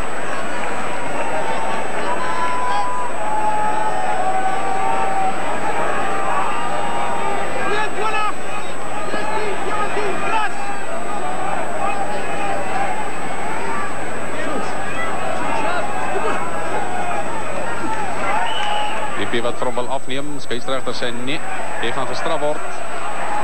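A large crowd murmurs and cheers across an open stadium.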